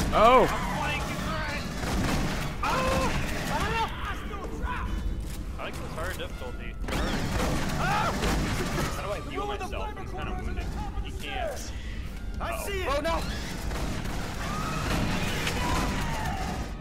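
Rifles fire in rapid bursts.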